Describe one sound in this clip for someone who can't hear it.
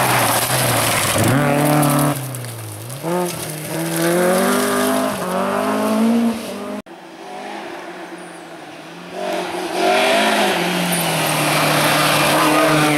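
Gravel sprays and crunches under fast tyres.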